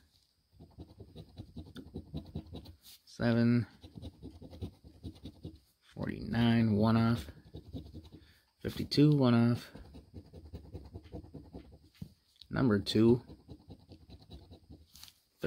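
A coin scrapes rapidly back and forth across a scratch card.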